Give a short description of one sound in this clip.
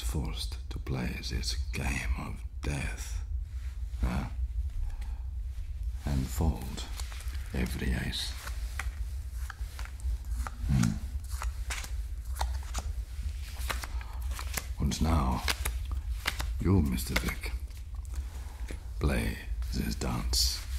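A man speaks with a calm, low voice close to a microphone.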